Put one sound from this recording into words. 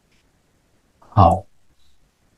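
An elderly man speaks briefly and calmly into a microphone.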